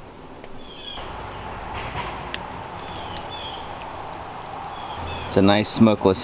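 A wood fire crackles and roars.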